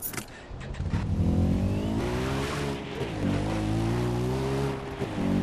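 A quad bike engine starts and revs.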